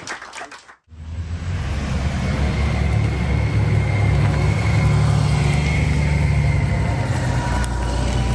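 Motorcycle engines idle and rumble as the bikes roll out slowly.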